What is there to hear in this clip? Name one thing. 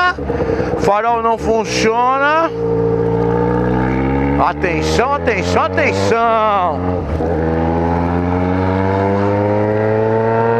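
A motorcycle engine revs up hard and drops between gear changes, then hums steadily.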